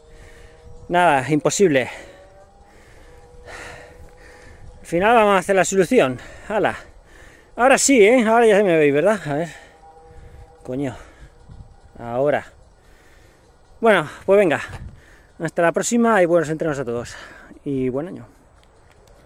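A man speaks close up in short bursts.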